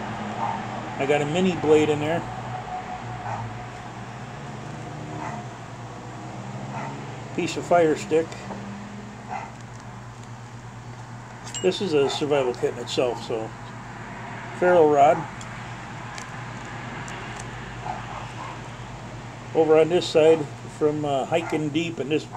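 A middle-aged man talks calmly close by, in short bursts.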